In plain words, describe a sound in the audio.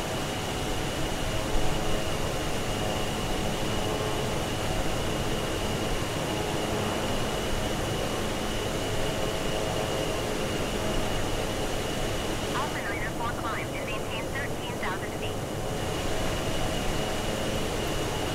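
The engines of a twin turboprop airliner drone steadily in flight.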